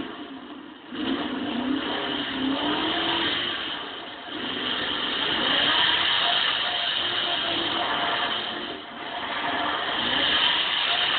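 A car engine roars and revs loudly.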